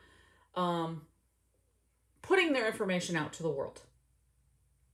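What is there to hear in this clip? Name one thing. A middle-aged woman speaks with animation close to the microphone.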